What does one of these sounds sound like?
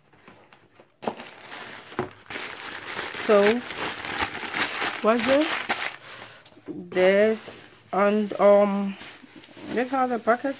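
Crumpled paper rustles and crackles as hands dig through it.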